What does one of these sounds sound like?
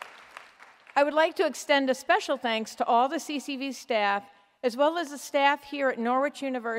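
An elderly woman speaks calmly through a microphone.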